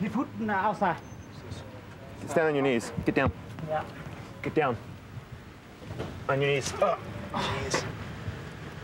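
A man shouts commands loudly and urgently nearby.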